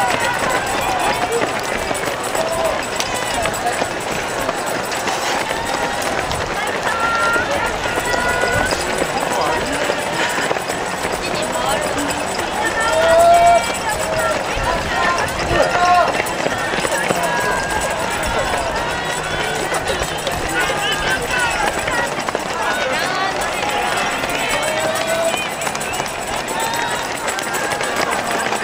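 Runners' footsteps patter on the road.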